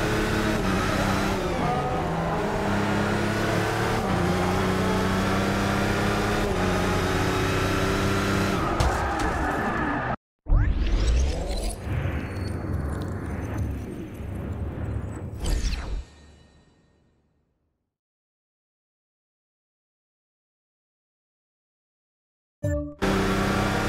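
A racing car engine roars at high revs, rising and dropping in pitch as it shifts gears.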